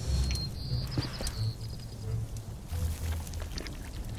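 A fire crackles and roars softly.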